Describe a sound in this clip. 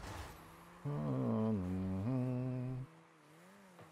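A car engine roars loudly, its pitch dipping and rising, then cuts off.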